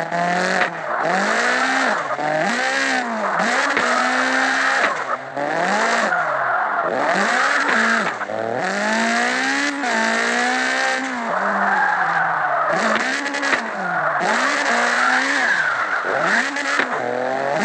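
A racing car engine revs hard, its pitch rising and falling with gear changes.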